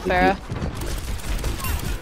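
A game pistol fires quick electronic shots.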